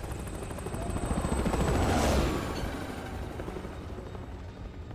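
A rocket engine roars past and fades away.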